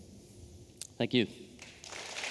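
A young woman speaks through a microphone in a large hall.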